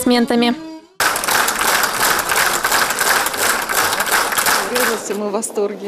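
A large audience applauds loudly.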